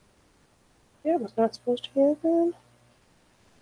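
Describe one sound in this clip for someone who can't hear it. A young woman speaks briefly and calmly close to a microphone.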